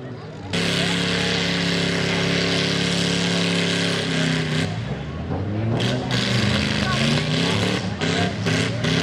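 A truck engine roars loudly close by, revving up and down.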